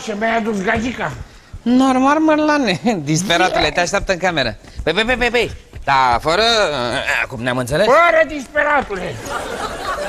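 A middle-aged man speaks with animation.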